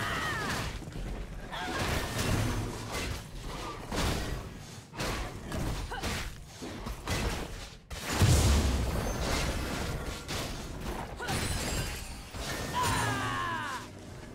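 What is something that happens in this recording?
Magic blasts and weapon hits crash in a fast fight.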